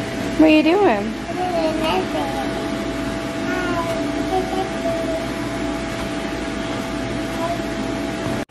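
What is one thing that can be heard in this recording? A young girl squeals and laughs with delight.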